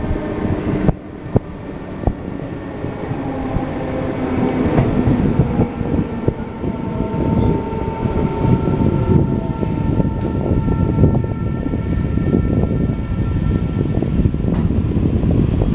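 A train rumbles along the tracks, its wheels clattering over rail joints.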